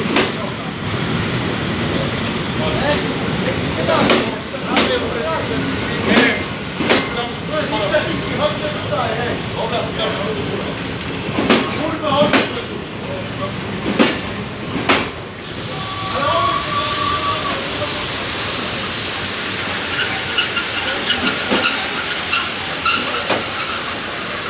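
A passenger train rolls steadily past, close by.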